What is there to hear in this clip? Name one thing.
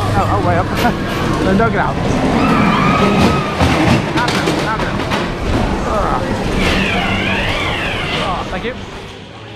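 Young men shout and laugh excitedly close by.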